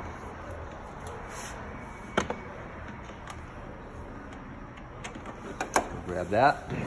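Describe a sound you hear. Metal tools clink and knock against engine parts.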